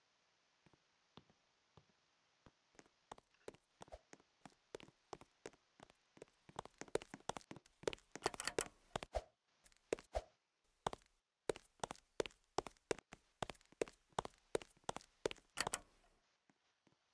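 Quick footsteps tap on wooden boards.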